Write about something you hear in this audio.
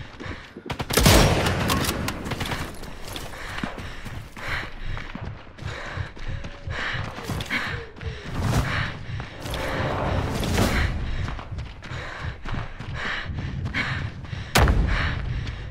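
A rifle fires with a loud crack.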